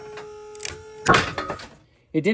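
A rope snaps with a sudden loud bang.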